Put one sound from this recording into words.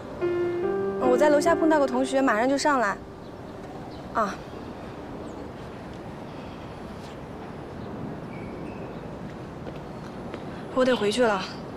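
A young woman talks into a phone close by.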